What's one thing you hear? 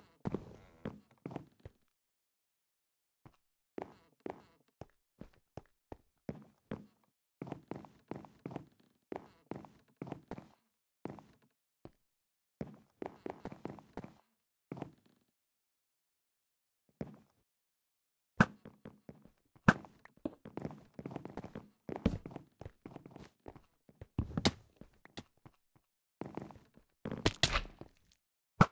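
Blocks are placed with soft repeated thuds.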